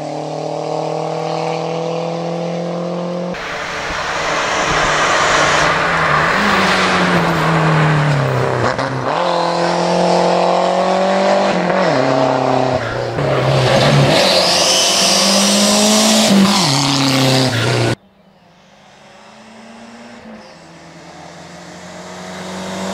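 A turbocharged four-cylinder hatchback race car accelerates hard up a hill road, its engine climbing and dropping through gear changes.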